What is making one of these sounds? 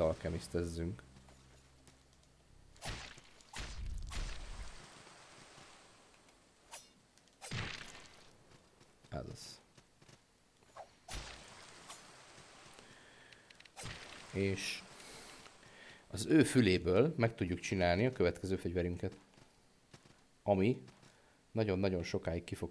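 Game sound effects of sword swings and hits ring out.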